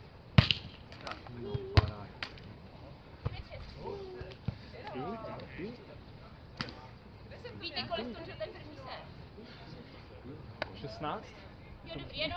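Young adult players call out to each other across the court.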